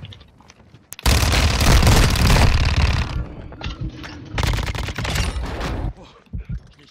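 A rifle fires in fast, loud bursts.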